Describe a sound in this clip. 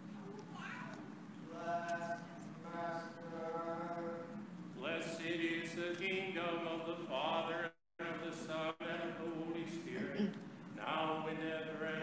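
A man chants in a sung voice in a large echoing room.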